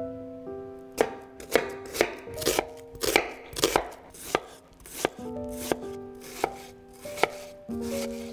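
A knife chops through an onion onto a wooden board with sharp knocks.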